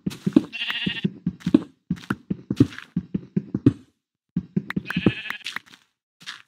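Blocks of stone crumble and break.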